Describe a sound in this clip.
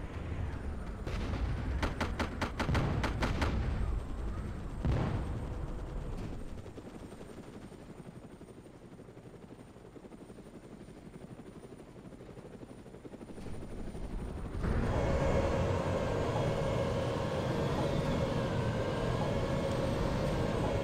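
A tank engine roars and rumbles as the tank drives.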